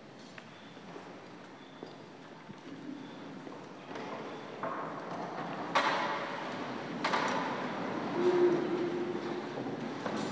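Footsteps shuffle across a hard floor as a group walks slowly.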